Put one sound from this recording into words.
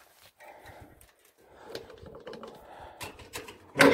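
Metal parts click and rattle as a hand handles engine wiring.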